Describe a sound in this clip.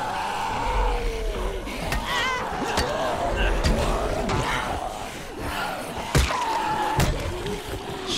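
A blade hacks into flesh with wet thuds.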